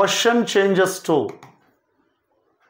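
A man speaks clearly and with emphasis, close to a microphone.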